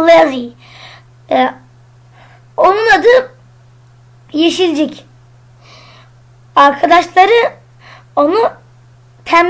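A child speaks animatedly in short bursts, close to a microphone.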